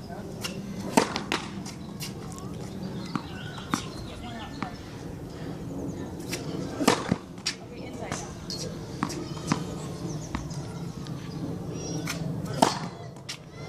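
A tennis racket strikes a ball on a serve.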